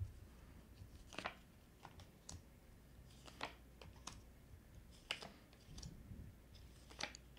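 Cards are laid down softly one by one on a cloth-covered table.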